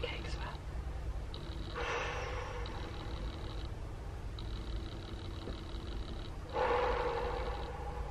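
A young woman groans in discomfort.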